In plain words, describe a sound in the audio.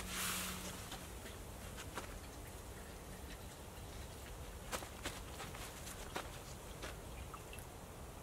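A dog rustles through dry leaves.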